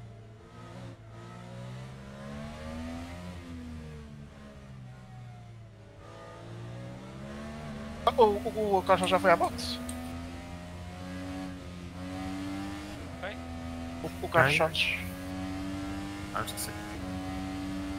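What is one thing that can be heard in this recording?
An open-wheel formula racing car engine revs up hard while accelerating.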